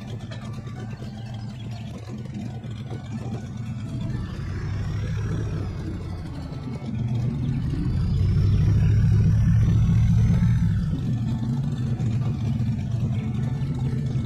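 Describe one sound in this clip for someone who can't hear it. A large vehicle engine rumbles and revs up and down.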